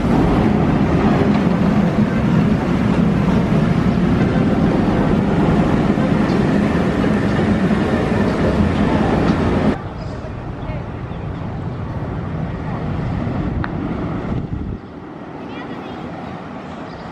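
A roller coaster train rumbles and roars along its track.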